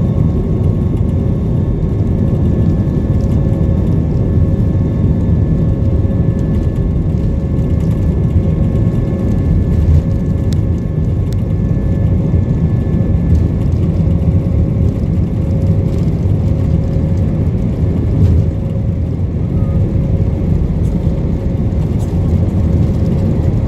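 A jet engine roars steadily close by.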